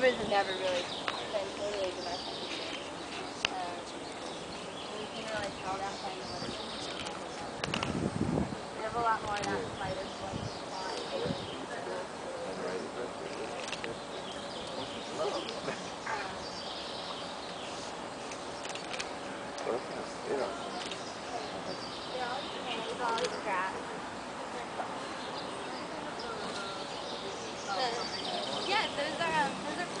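A group of young men and women chat outdoors.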